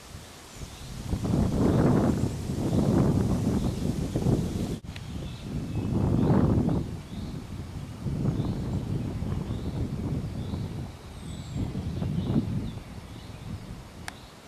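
Wind gusts buffet loudly outdoors in bursts.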